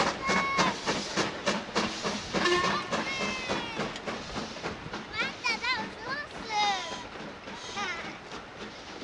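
A steam locomotive puffs loudly in quick, rhythmic bursts.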